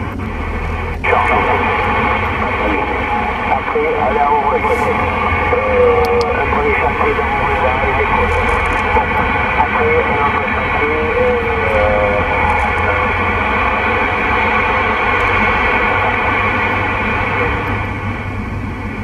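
A CB radio hisses with static over its loudspeaker.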